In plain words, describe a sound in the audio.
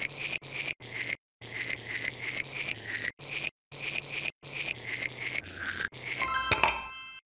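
A toothbrush scrubs teeth in short strokes.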